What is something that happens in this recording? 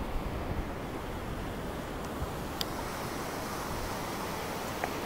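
Waves wash onto the shore and break steadily.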